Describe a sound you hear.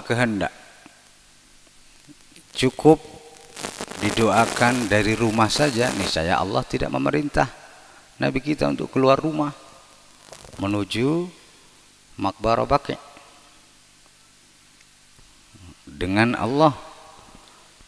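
A man recites in a melodic chant through a microphone, echoing in a large hall.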